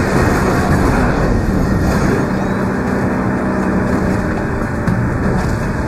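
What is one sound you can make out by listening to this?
A car engine roars steadily as it speeds along.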